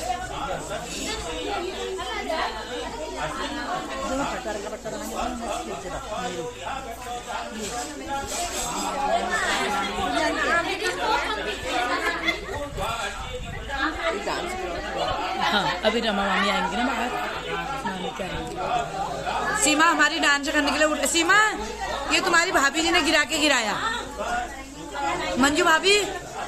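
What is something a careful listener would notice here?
A group of women sing together in a room.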